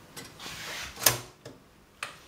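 A toaster lever clicks down with a sharp snap.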